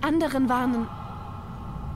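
A young woman speaks quietly and urgently.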